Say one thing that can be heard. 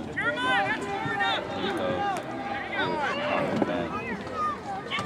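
Young boys shout and call out loudly nearby, outdoors.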